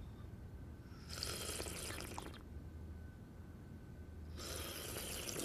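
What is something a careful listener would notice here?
People sip tea noisily.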